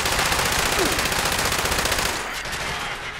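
A machine gun fires a rapid burst.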